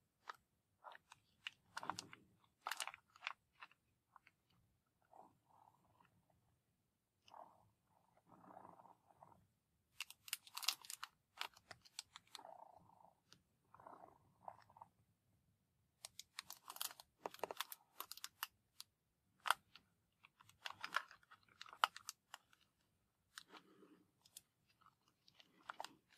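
Fingers tap and scratch on a cardboard matchbox.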